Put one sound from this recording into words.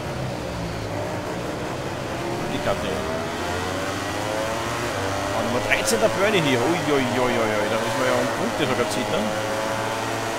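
Racing motorcycle engines whine loudly, rising in pitch as they speed up.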